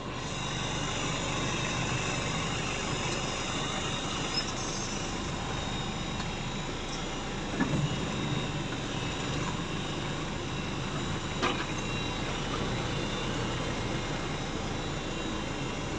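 A truck rumbles and rattles over a rough track.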